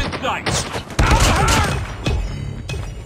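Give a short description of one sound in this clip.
A knife slashes in a close struggle.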